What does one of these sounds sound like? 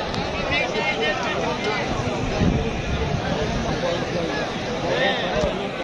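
A large crowd of men talks and shouts outdoors, close by and all around.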